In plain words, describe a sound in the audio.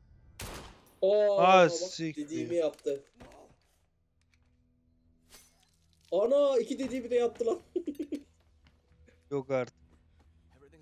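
A man speaks loudly in a strained, emotional voice.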